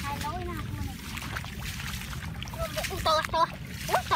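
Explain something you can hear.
A hand splashes in shallow water.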